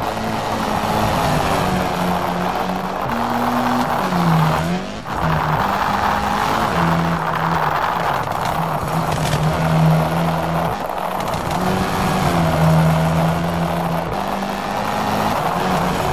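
Gravel sprays and crunches under a car's tyres.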